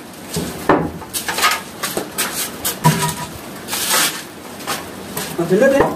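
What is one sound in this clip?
Concrete blocks clunk as they are set down on a stack.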